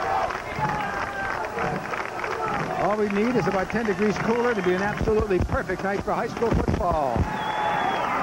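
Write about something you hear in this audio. A large crowd murmurs in a stadium.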